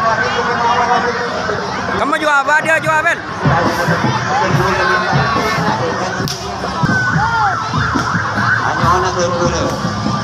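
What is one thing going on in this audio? A large crowd chatters and calls out outdoors at night.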